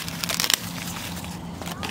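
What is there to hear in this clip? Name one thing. Dry leaves rustle as a hand handles a corn cob.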